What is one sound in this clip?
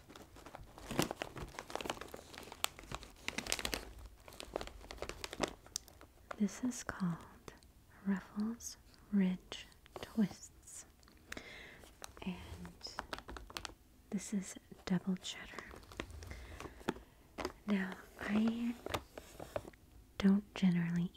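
A crinkly plastic snack bag rustles and crackles.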